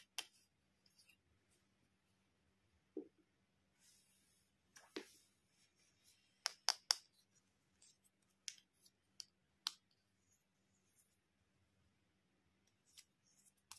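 Plastic toy pieces click and tap against each other.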